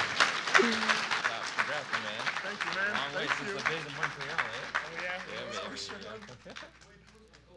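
An audience applauds and cheers in a large hall.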